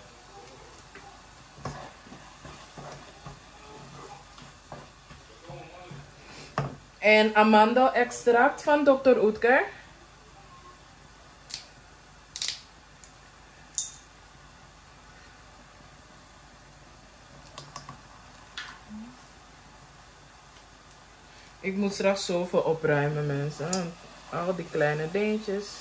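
A wooden spoon scrapes and stirs rice in a pot.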